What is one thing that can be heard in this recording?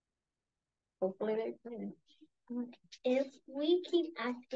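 A young girl reads aloud over an online call.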